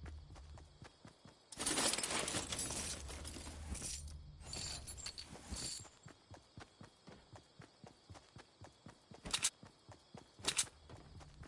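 Footsteps patter quickly across a wooden floor.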